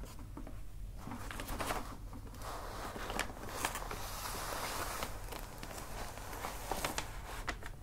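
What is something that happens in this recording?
Rolls of wrapping paper rustle and rub together.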